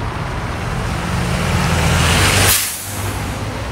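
A bus passes close by with a rushing whoosh.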